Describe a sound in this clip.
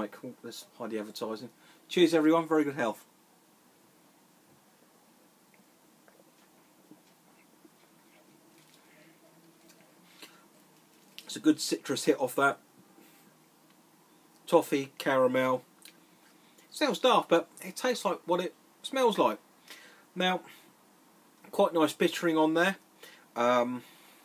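A man talks calmly and close to the microphone, with pauses.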